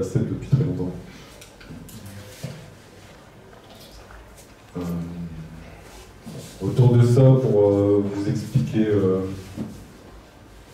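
A man speaks into a microphone in an echoing room, explaining with pauses.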